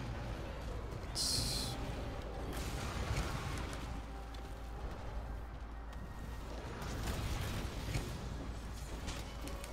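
A video game monster growls.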